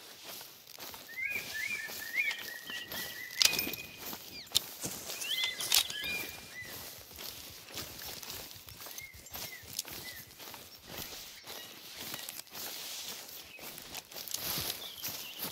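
Footsteps rustle through dry undergrowth.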